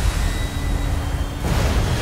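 Water laps and splashes as a pole pushes a small boat along.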